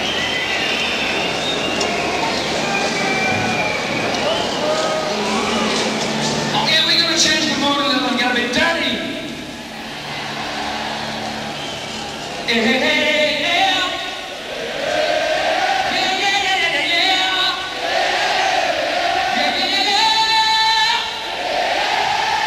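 A rock band plays electric guitar and drums.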